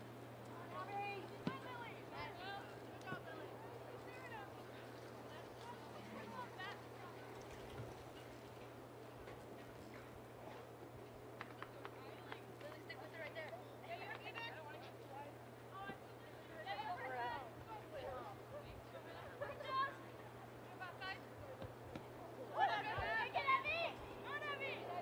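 Young women shout and call out across an open field in the distance.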